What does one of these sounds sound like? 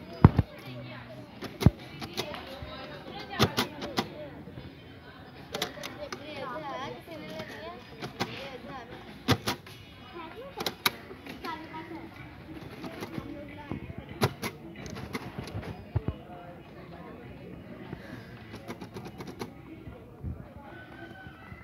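A crayon scratches softly across paper.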